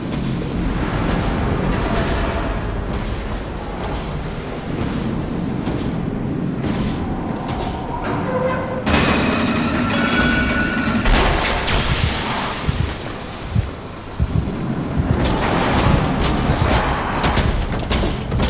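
Footsteps clank on metal stairs and a hard floor.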